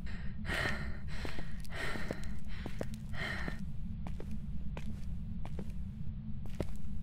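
Footsteps tap on a hard tiled floor at a walking pace.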